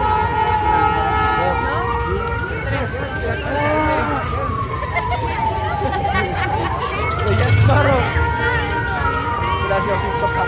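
A crowd of young people chatters and calls out nearby outdoors.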